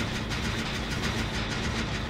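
A chainsaw engine idles and sputters.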